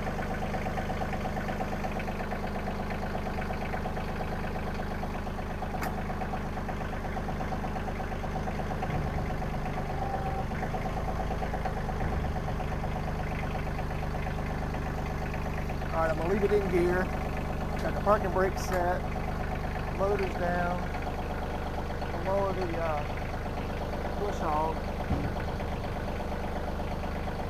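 A three-cylinder compact diesel tractor idles.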